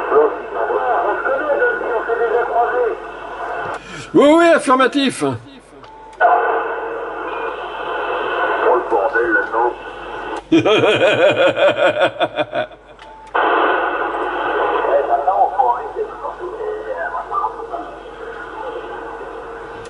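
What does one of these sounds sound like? Voices come through a radio loudspeaker, thin and crackling.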